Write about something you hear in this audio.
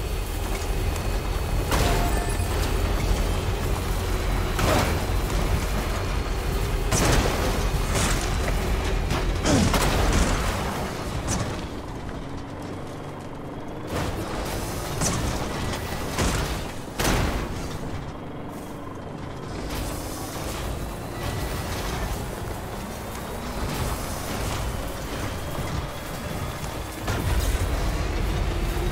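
An off-road truck engine rumbles steadily as it climbs rough ground.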